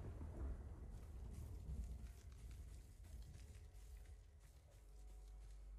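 Footsteps run through long grass.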